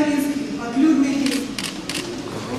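A woman sings into a microphone in an echoing hall.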